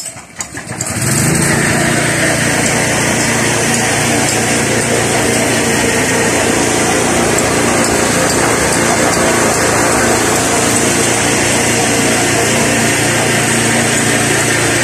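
A cement mixer's engine runs loudly and steadily.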